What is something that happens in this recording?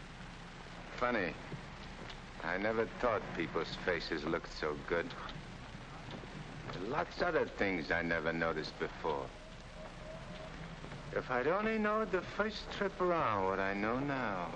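A man speaks calmly nearby, with pauses.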